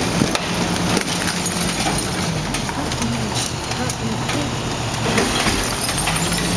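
A truck's compactor whines and grinds.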